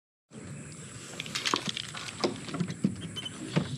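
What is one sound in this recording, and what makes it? A wooden door handle rattles and clicks.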